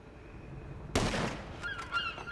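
A rifle fires a single loud shot.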